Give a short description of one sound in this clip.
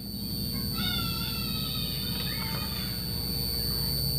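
A door creaks open.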